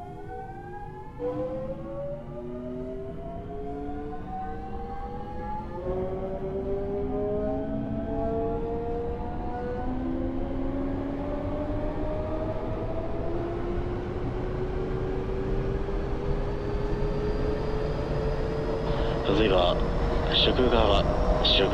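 Train wheels rumble and clatter over the rails, growing louder.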